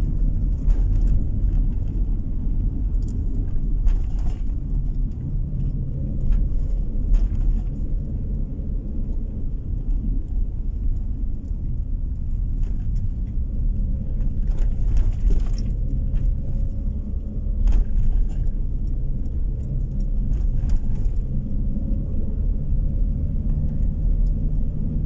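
A vehicle engine hums steadily as it drives along a road.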